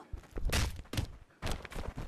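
A sword clashes.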